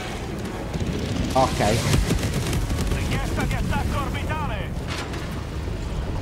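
Explosions rumble and crackle nearby.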